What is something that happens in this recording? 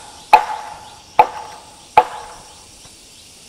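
A hammer strikes wood three times, each blow ringing briefly.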